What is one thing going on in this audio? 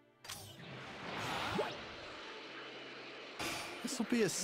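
A rushing whoosh of a game character flying fast plays.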